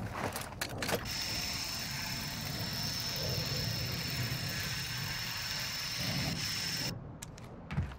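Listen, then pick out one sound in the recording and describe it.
A rope line whirs steadily during a fast slide.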